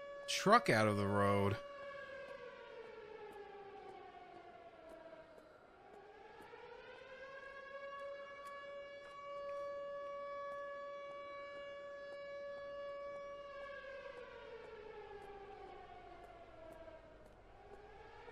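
An engine hums and rises and falls in pitch as a vehicle drives.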